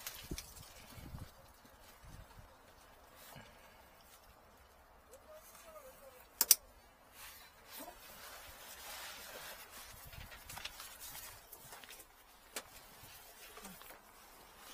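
Small metal parts click and rattle as hands handle them up close.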